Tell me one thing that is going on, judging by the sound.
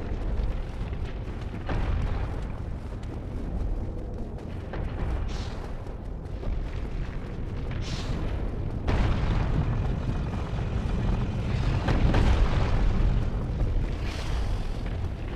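Armoured footsteps clank on stone steps, echoing.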